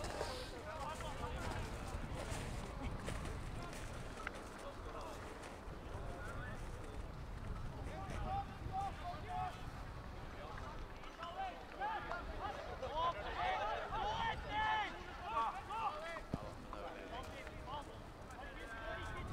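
Football players shout to each other across an open outdoor field.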